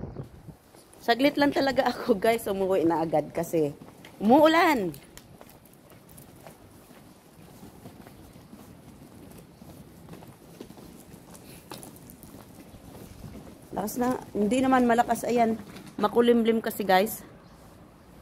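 A middle-aged woman talks close to the microphone with animation.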